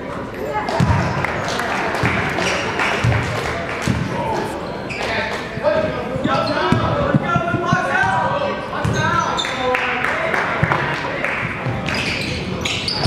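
Young men and spectators chatter and call out in an echoing gym.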